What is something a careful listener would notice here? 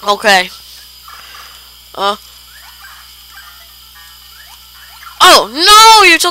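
Bleepy retro video game sound effects chirp and sweep up and down in pitch.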